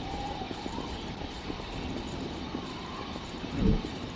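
Footsteps run quickly over gritty ground.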